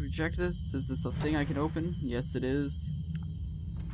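A sliding door rumbles open.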